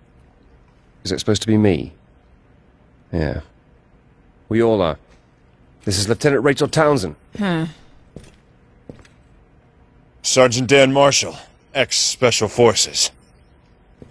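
Another man asks a question calmly and then speaks at length.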